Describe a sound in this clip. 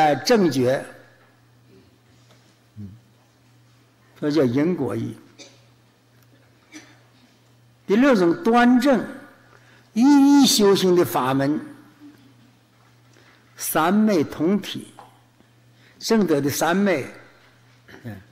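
An elderly man speaks slowly and calmly into a microphone, in short phrases with pauses.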